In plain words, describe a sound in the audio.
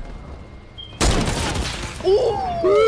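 A bright shimmering whoosh sounds as a game character is beamed away.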